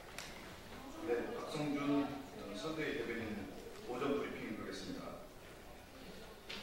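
A man speaks calmly into a microphone in a large, echoing room.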